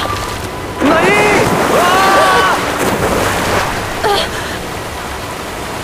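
Water roars down a waterfall and churns below.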